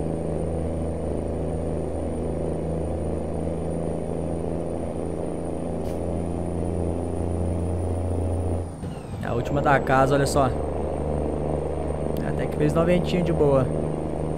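A truck engine drones steadily while driving on a road.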